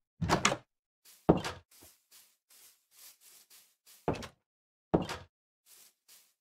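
Footsteps crunch softly on sand.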